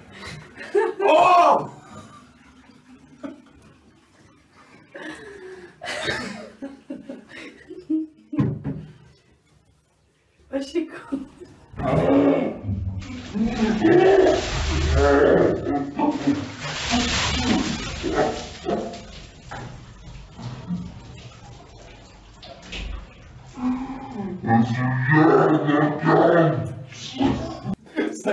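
A young man laughs loudly close by in a small echoing room.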